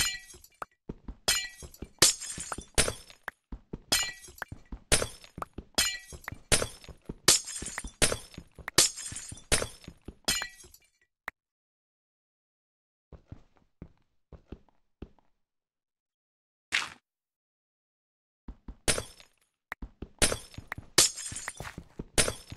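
A pickaxe chips rapidly at stone blocks, each block breaking with a crunch.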